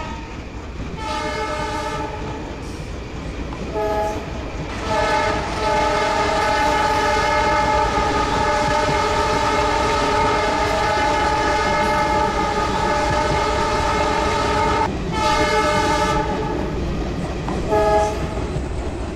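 A diesel locomotive horn blows in repeated loud blasts, one long.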